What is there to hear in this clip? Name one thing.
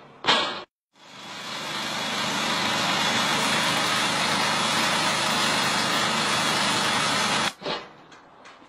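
A cutting machine roars loudly and steadily as it grinds through asphalt.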